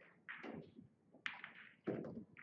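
A cue strikes a pool ball with a sharp tap.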